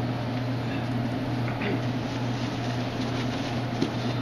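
Paper rustles in a young man's hands.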